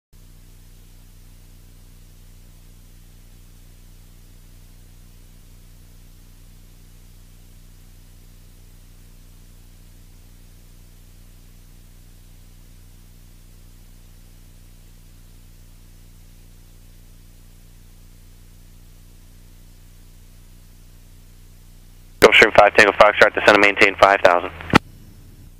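A small plane's engine drones steadily in flight.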